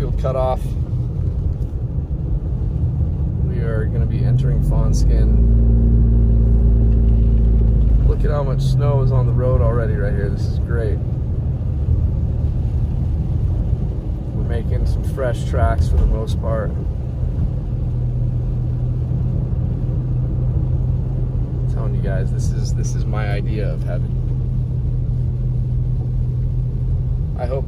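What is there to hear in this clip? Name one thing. A car's engine rumbles low and steadily.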